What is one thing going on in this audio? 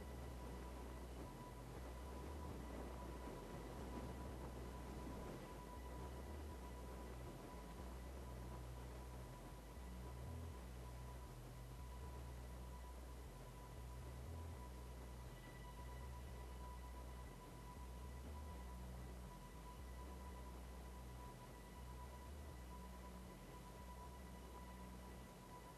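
Wind rushes steadily past a car gliding under a parachute.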